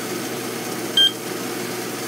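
A digital scale beeps once.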